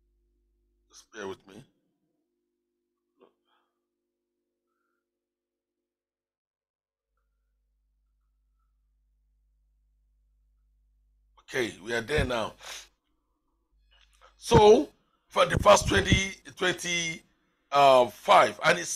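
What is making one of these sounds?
A man speaks with feeling into a close microphone, in short bursts with long pauses.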